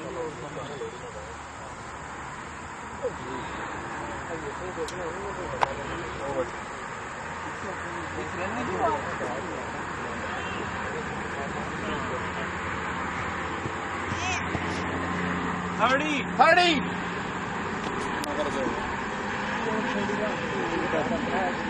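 Men talk and call out at a distance outdoors.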